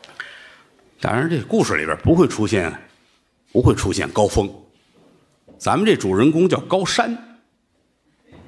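A middle-aged man speaks with animation through a microphone on a loudspeaker.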